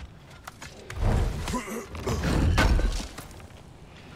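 A heavy chest lid creaks open and thuds.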